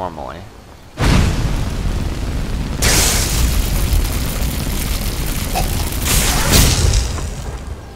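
Flames roar and crackle loudly in bursts.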